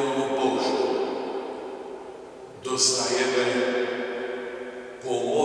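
An elderly man speaks slowly and solemnly into a microphone in an echoing hall.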